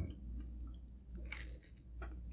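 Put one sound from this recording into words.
Pizza crust crunches as a young woman bites into it close to a microphone.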